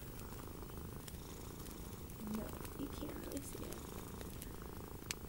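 Fingernails tap and click against a small hard case.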